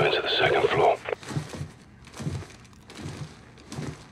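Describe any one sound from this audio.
Footsteps thud on stairs.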